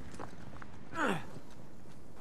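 A man lands heavily after a jump.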